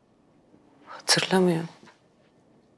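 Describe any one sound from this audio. A woman speaks in a low, shaken voice close by.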